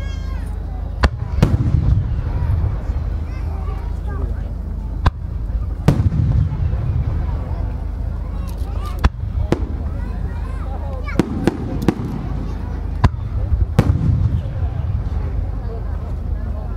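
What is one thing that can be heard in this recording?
Aerial firework shells burst with sharp booms that echo across open ground.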